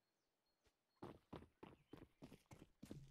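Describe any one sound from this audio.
Quick footsteps thud on stone stairs.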